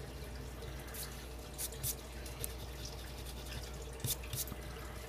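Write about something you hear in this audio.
Fingers brush scratchings off a paper ticket.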